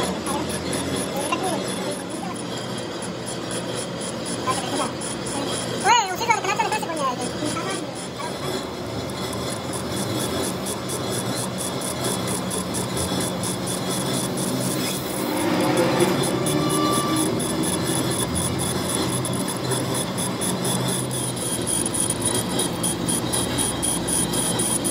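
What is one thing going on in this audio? A lathe hums steadily as it turns.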